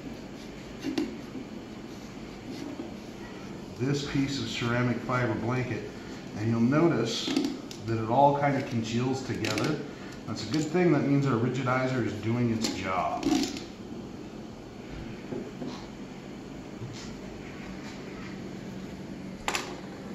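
A metal box rattles softly as it is handled.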